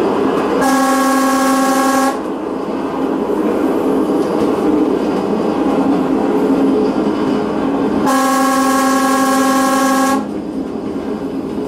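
A train rumbles and clatters along the rails.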